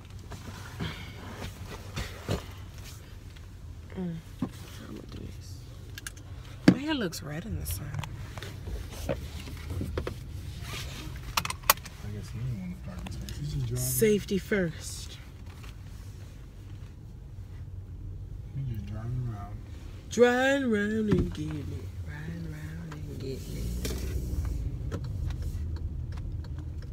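A car engine hums low and steady inside the car.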